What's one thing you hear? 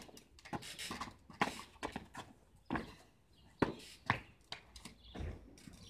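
Sneakers scuff and tap on concrete.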